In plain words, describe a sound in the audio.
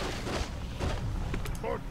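A fiery explosion bursts with a crackling blast.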